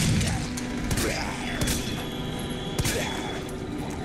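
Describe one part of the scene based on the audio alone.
A zombie groans and snarls close by.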